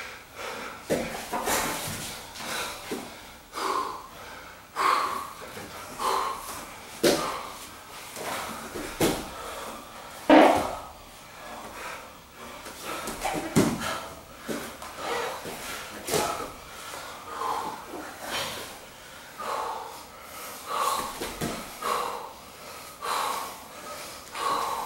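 Two men grunt and breathe hard with effort.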